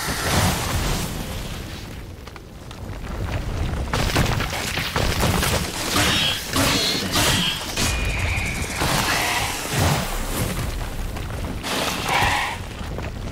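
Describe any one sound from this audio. A sword swishes and strikes in a fight.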